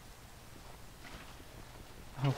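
Water splashes as a bucket is emptied.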